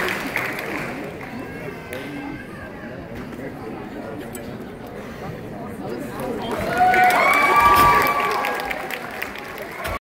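Music plays over loudspeakers in a large hall.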